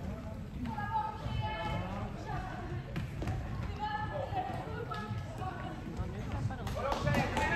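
Players shout to each other in a large echoing hall.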